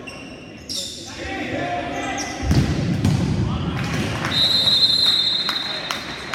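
Sneakers squeak sharply on an indoor court.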